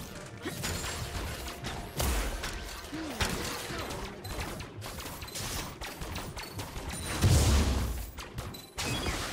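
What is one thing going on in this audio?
Video game spells and weapon blows crackle and thud in a busy battle.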